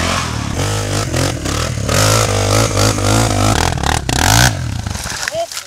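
A motorbike engine revs hard and strains close by.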